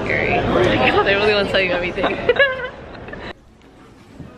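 A young woman laughs up close.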